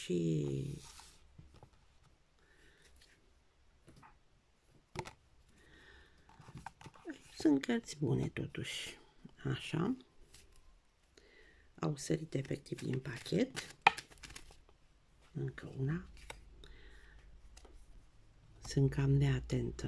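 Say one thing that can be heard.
Playing cards are laid down softly on a paper surface.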